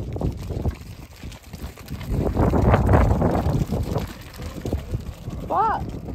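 Sheep hooves patter quickly on gravel.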